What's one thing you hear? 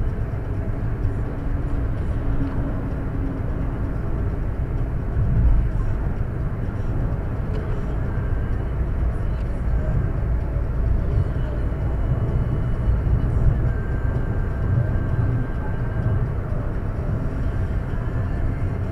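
A car engine hums steadily with tyre roar heard from inside the car.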